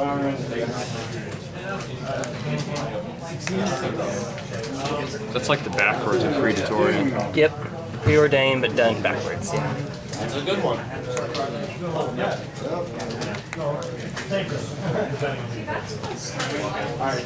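Playing cards rustle and slap as they are shuffled by hand.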